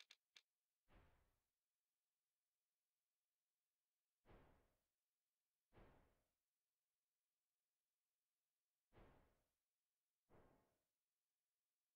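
A game menu makes short soft whooshing clicks as options are chosen.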